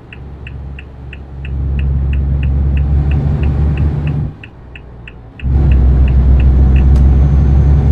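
A truck engine rumbles deeply and steadily, dipping briefly during a gear change.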